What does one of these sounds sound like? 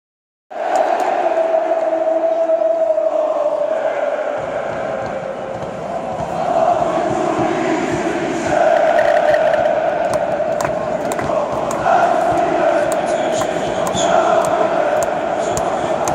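A huge stadium crowd chants loudly in unison, echoing around the stands.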